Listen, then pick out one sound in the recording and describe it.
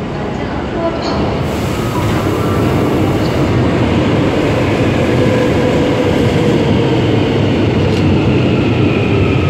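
A train rolls past close by with a loud, steady rumble and rattle.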